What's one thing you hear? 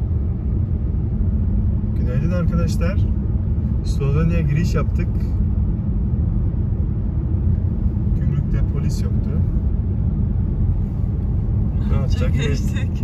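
A car's engine and tyres rumble steadily on a smooth road, heard from inside.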